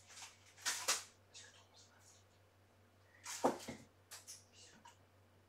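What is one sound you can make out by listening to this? Paper rustles and crinkles as it is handled close by.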